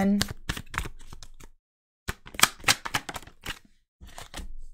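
Cards are shuffled in a hand with soft flicking.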